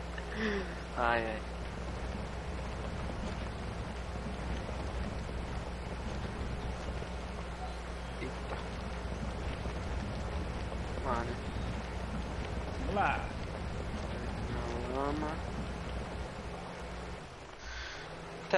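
A vehicle engine rumbles low and steady as it drives over rough ground.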